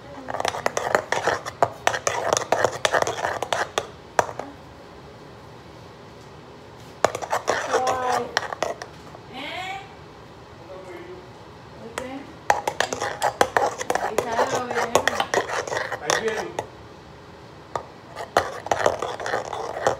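A utensil clinks and scrapes against a metal bowl.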